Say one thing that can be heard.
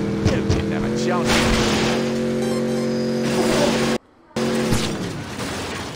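A car crashes and rolls over onto its roof.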